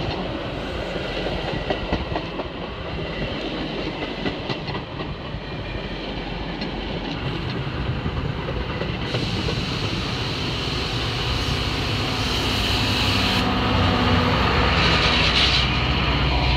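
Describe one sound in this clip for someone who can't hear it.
A passenger train rolls past close by, its wheels clattering over the rail joints.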